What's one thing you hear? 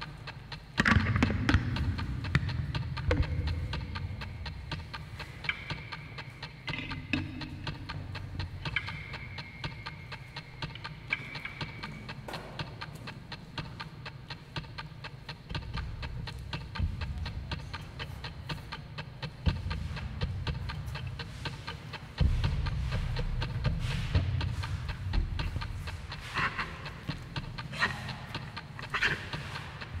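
A dancer's feet scuff and stamp on a hard floor in a large echoing hall.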